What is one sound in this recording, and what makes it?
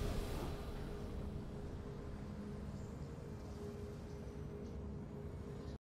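A short triumphant game tune plays with a steady held note.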